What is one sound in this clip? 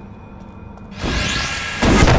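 A magical portal hums and whooshes open.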